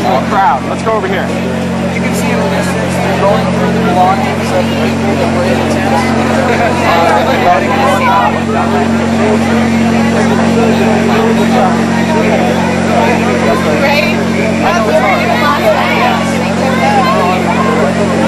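A crowd of young men and women talks and shouts outdoors.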